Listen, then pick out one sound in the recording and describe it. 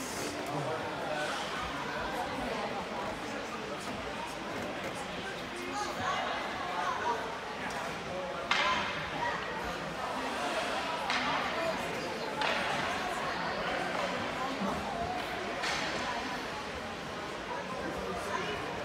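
Spectators chatter in a large echoing rink.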